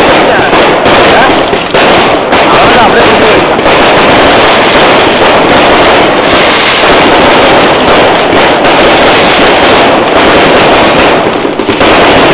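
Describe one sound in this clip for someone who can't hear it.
Fireworks burst with deep booms overhead.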